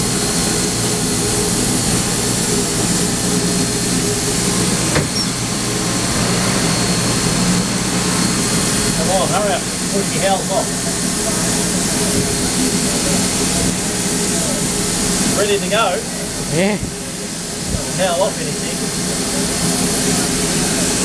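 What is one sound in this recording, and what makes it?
A steam locomotive rumbles and roars under way, heard from inside the cab.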